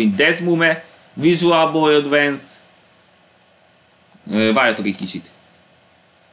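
A young man talks calmly into a nearby microphone, in short bursts.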